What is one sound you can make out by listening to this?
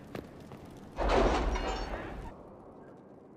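A heavy wooden door swings open with a loud rumbling rush.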